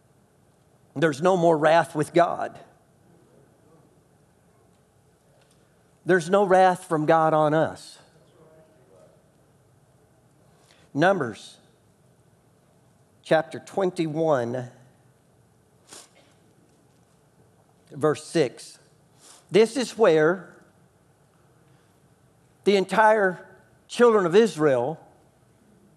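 A man speaks calmly into a microphone, in bursts with long pauses.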